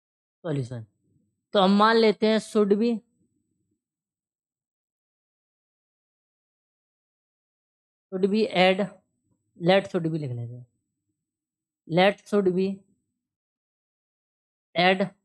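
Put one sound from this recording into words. A young man speaks calmly in short phrases, explaining, close to a microphone.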